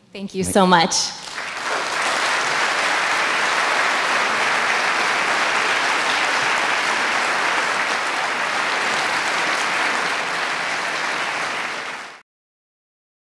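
A large audience applauds loudly and steadily, then the applause fades.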